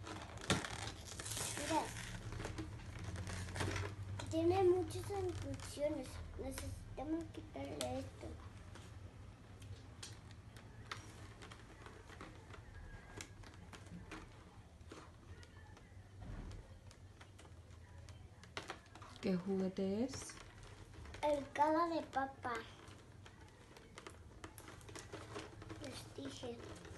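Cardboard packaging rustles and crinkles in small hands.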